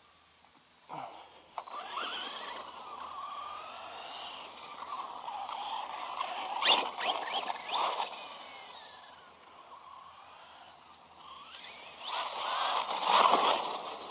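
A toy car's electric motor whines and revs as it speeds off.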